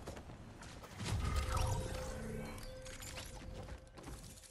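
A game's victory jingle plays.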